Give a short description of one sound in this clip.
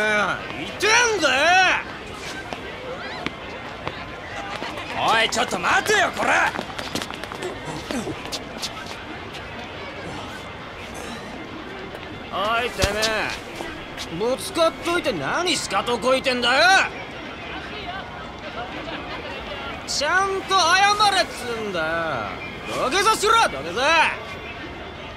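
A young man shouts angrily close by.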